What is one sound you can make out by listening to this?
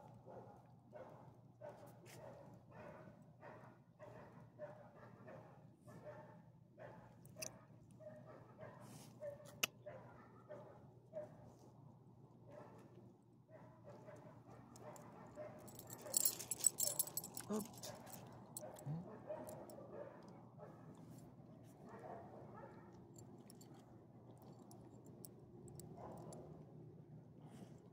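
A dog sniffs at the ground close by.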